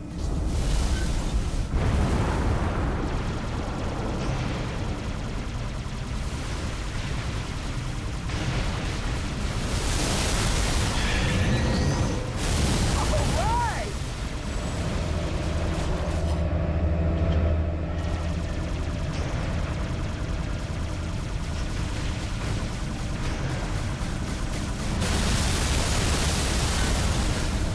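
A ship's engine hums steadily.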